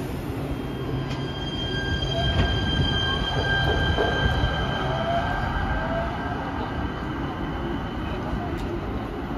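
A light rail train's electric motors whine steadily as it pulls away.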